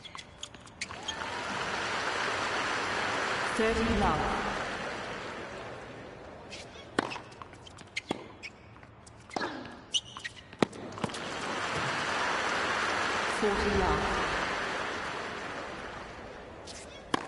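A crowd applauds and cheers in swelling waves.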